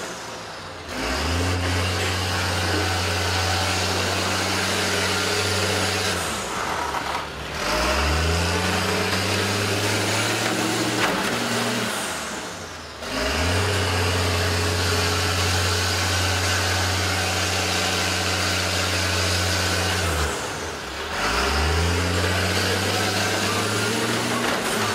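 Metal scrapes and drags over dirt.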